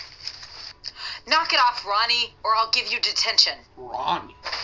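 A woman speaks sternly.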